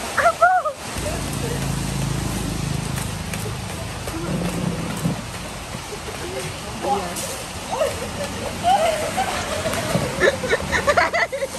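Water guns squirt jets of water.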